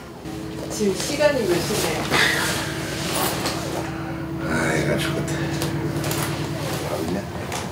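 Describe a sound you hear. A woman speaks with annoyance nearby.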